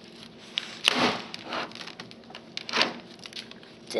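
Hands bump and knock against a television set.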